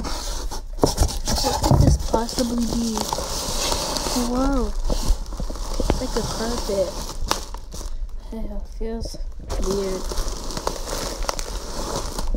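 Plastic bubble wrap crinkles and rustles.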